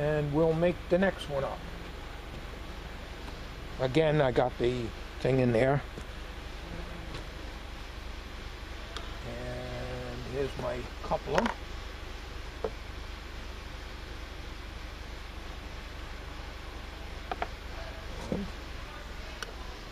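Tools and plastic parts clack against a wooden bench.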